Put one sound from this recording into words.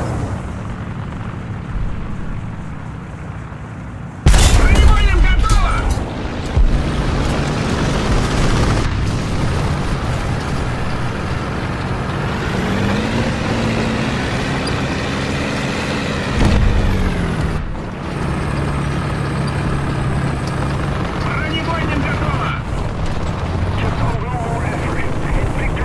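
A tank engine rumbles and roars steadily.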